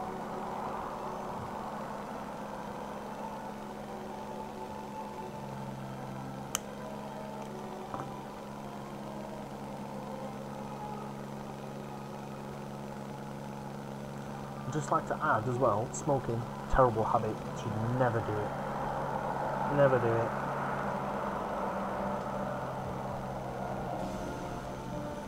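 A plane's propeller engine drones steadily.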